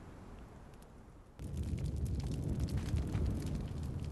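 Footsteps thud on a wooden floor.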